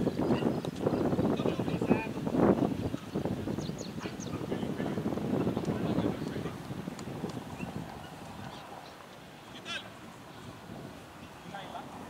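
Men call out to each other at a distance outdoors.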